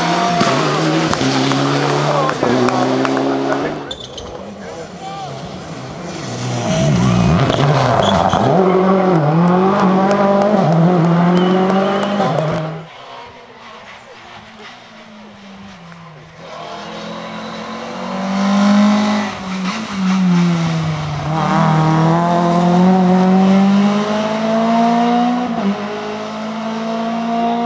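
Rally car engines roar and rev hard as the cars race past.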